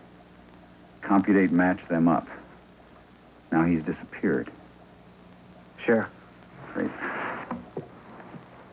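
A man speaks in a low, serious voice.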